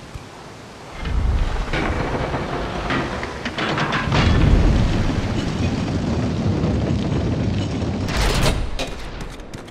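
Chained blades swing and strike with heavy, booming blows.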